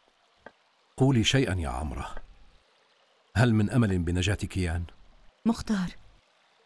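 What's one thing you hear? A middle-aged man speaks gravely and close by.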